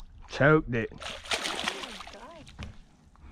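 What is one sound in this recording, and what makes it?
A fish splashes and thrashes at the water's surface.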